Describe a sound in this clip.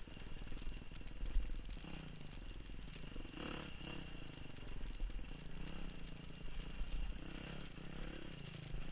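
A dirt bike engine buzzes and revs up and down close by.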